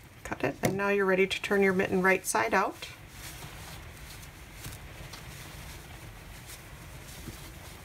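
Knitted fabric rustles softly as hands squeeze and fold it.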